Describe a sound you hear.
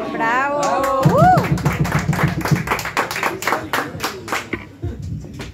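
A small group claps hands in a quick, steady rhythm.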